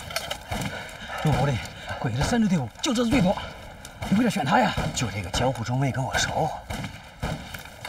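A man speaks urgently in a low voice, close by.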